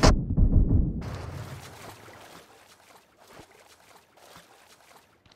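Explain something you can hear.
Water splashes and swishes as a game character swims.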